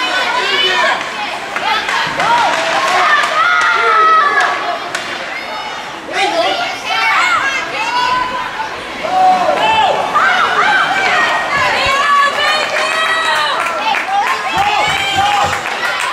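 Hockey sticks clack against the puck.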